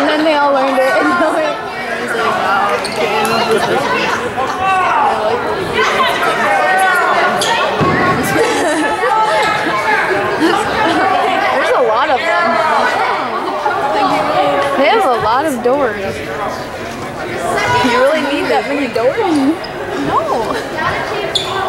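A crowd of spectators talks and calls out in a large echoing gym.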